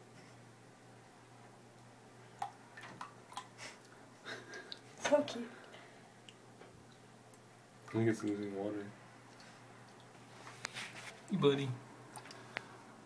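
Shallow water splashes and sloshes in a sink.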